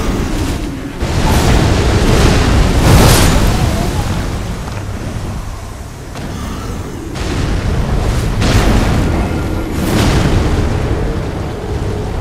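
Heavy crashing impacts boom as a huge creature slams the ground.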